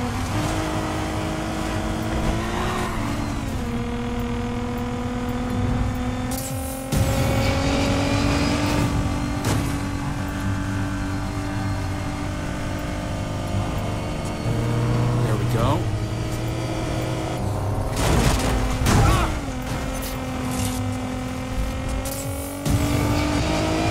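Tyres skid and scrape through loose dirt.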